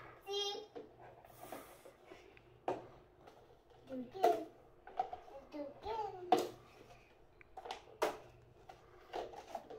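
Plastic cups tap lightly as they are stacked.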